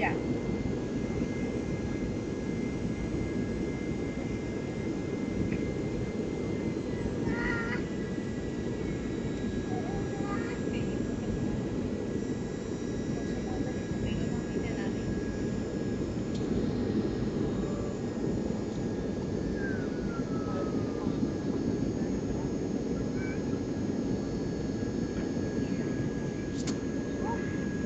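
A jet engine roars steadily inside an airplane cabin.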